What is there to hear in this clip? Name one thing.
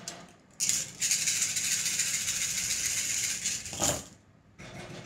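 Small shells rattle while being shaken between cupped hands.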